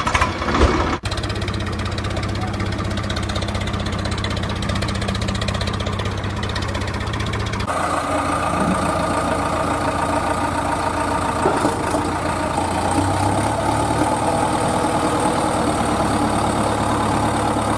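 A toy truck's electric motor whirs steadily.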